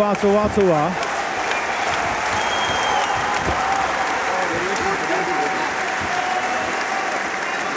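A crowd cheers and roars in a large hall.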